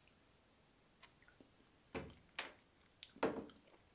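A glass clinks on a wooden surface.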